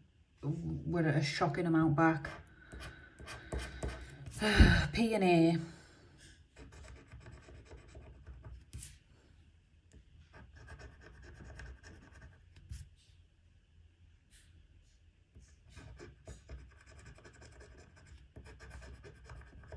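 A metal tool scratches across a scratch card.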